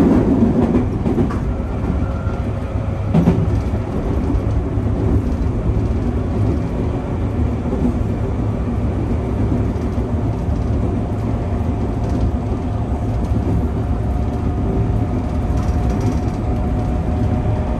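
An electric train motor hums, rising slowly in pitch as it speeds up.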